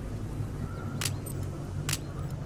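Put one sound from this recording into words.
A short electronic blip sounds twice.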